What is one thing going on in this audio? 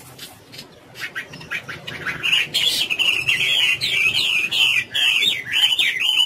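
A songbird sings a loud, warbling whistled song close by.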